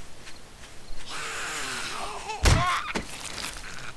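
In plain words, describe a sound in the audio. A zombie groans and snarls up close.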